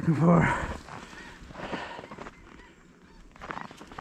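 A dog bounds through snow.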